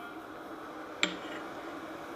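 A cup clinks against a hard surface.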